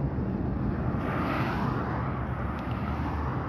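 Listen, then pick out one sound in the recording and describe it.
A car whooshes past close by.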